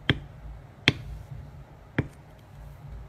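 A tool knocks sharply on a hard surface a few times.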